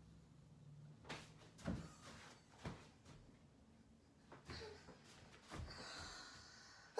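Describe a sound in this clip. Footsteps shuffle slowly across a floor.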